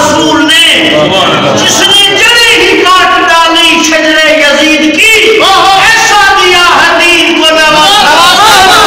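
A man chants loudly through a microphone with an echo.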